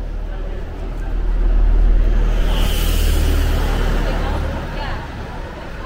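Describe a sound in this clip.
A double-decker bus rumbles past close by.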